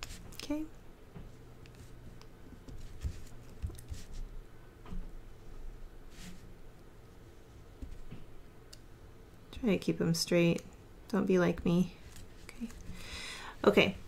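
A pen scratches lightly on paper.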